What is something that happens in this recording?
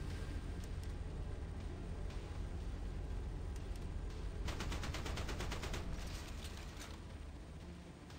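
A propeller plane drones past.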